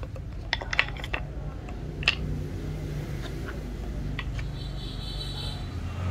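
Mallet heads knock and clatter against each other close by.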